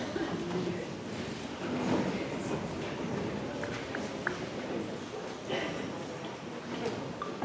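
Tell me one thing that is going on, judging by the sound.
A large band plays music in a big hall.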